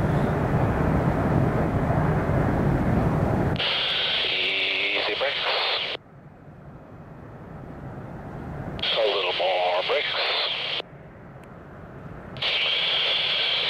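Jet engines roar and whine in the distance.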